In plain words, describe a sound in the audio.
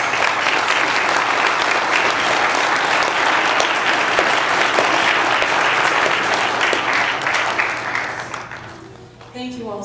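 A crowd applauds in a large echoing hall, then the clapping fades.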